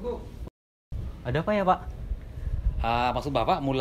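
A middle-aged man speaks warmly nearby.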